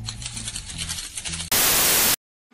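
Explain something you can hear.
Paper banknotes rustle as they are counted by hand.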